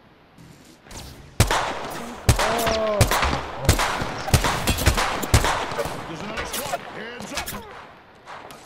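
Rapid gunfire rings out in quick bursts.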